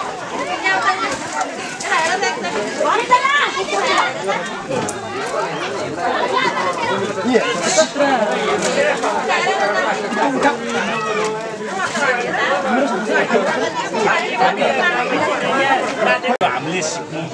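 Several men talk over each other close by, outdoors.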